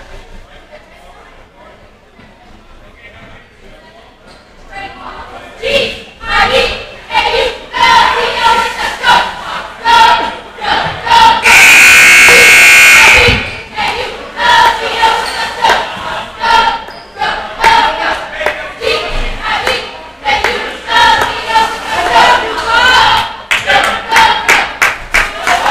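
A crowd murmurs in a large echoing gym.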